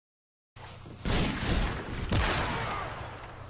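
A sniper rifle fires a loud shot.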